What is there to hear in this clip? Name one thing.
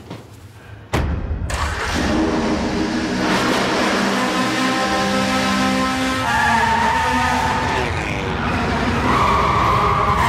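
A rally car engine roars and revs loudly.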